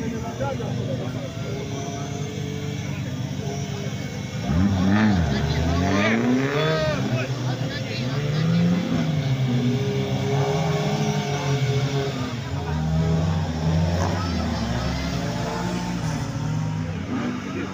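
An off-road truck engine roars and revs hard.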